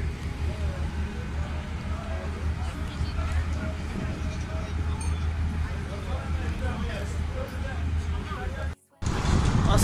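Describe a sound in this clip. Water splashes and churns against the hull of a ferry.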